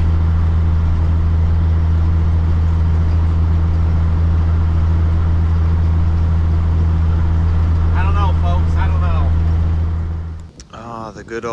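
A heavy truck engine drones steadily inside the cab.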